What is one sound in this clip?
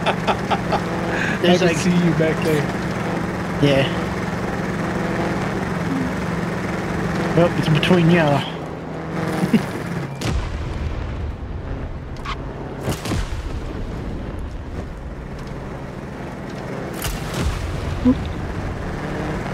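Tyres roll and rumble over rough ground.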